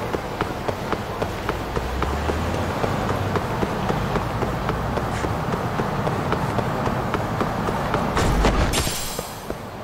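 City traffic hums steadily in the background.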